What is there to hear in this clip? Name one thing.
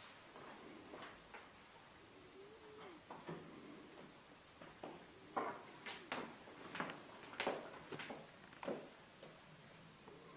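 Bare feet patter softly on a stage floor.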